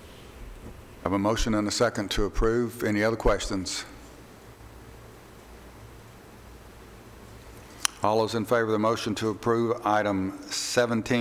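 An adult speaks calmly through a microphone in a large room.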